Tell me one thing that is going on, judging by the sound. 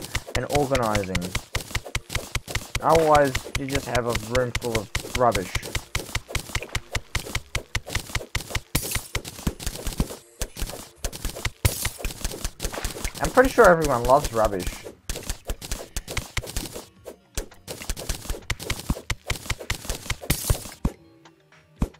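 A pickaxe chips at stone in rapid, repeated taps.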